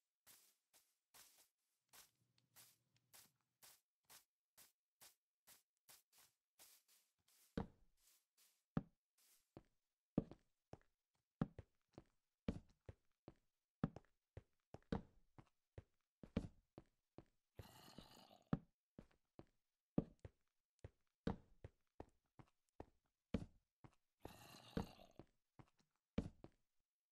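Footsteps crunch softly over grass, then thud on hard ground.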